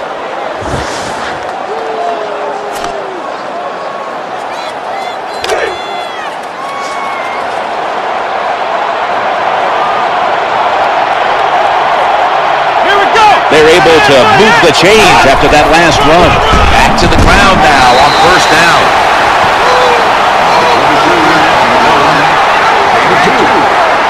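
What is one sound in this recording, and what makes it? A large stadium crowd roars, growing louder and staying loud.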